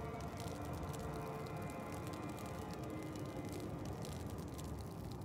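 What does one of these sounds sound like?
A low, eerie drone hums steadily.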